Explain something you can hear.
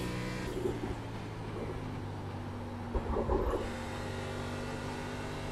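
A race car engine drones steadily.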